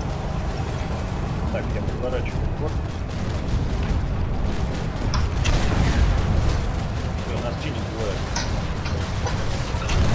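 A heavy vehicle engine rumbles steadily.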